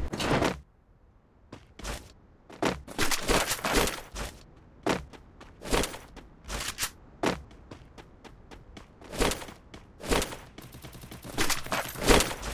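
Footsteps patter as a video game character runs.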